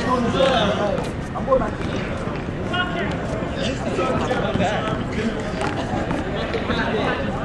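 Several young men talk and call out nearby, outdoors.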